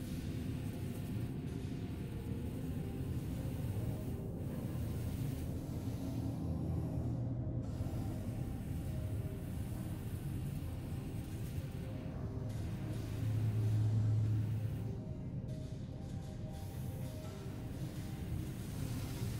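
A spacecraft engine hums low and steadily.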